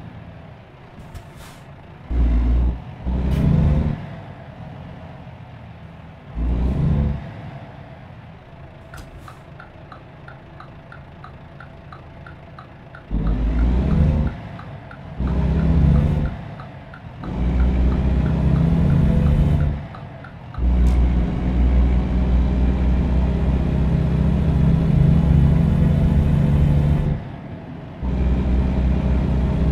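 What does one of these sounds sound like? A truck engine rumbles and roars in bursts as it accelerates.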